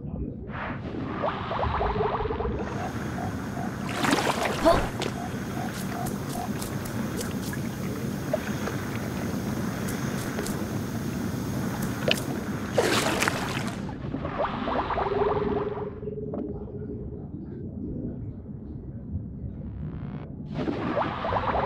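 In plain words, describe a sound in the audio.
Water bubbles and gurgles as a small figure swims underwater.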